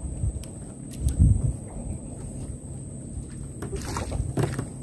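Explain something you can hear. A hooked fish splashes in the water.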